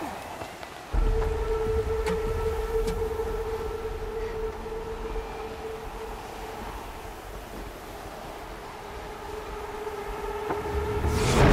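Strong wind howls and roars in a snowstorm.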